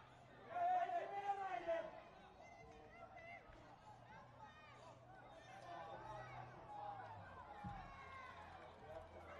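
A man shouts loudly across an open field.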